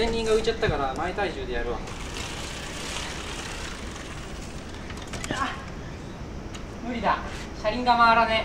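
Bicycle tyres roll over concrete.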